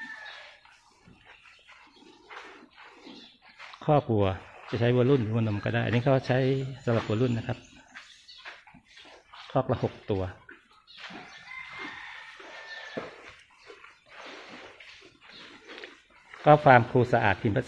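Cows munch and rustle through hay close by.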